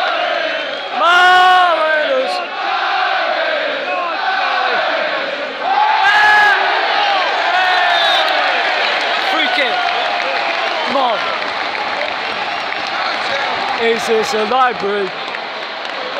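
Men close by shout and cheer loudly.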